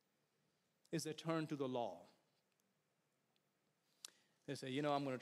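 A middle-aged man speaks with emphasis into a microphone, in short phrases with pauses.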